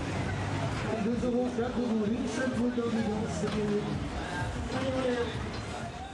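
Young riders shout and call out with excitement.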